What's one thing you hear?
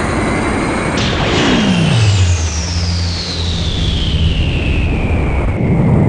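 A huge explosion booms with a deep, falling rumble.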